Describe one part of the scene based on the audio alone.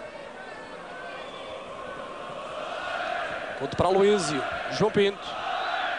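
A large stadium crowd chants and roars steadily outdoors.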